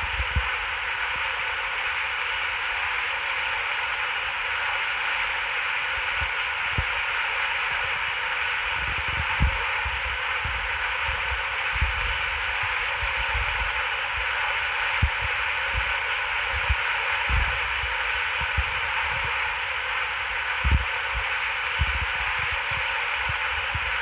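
A jet airliner's engines whine and hum steadily.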